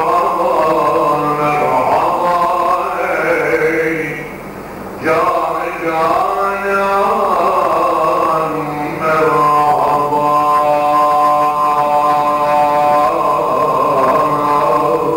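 A middle-aged man chants in a long, wavering voice into a microphone.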